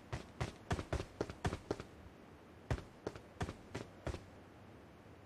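Footsteps tap quickly on a hard surface.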